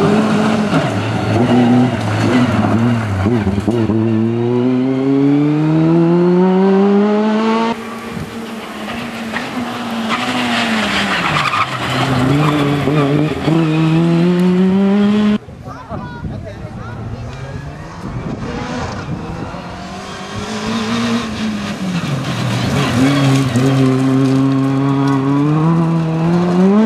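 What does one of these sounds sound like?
A rally car engine revs hard, rising and falling in pitch as the car speeds past.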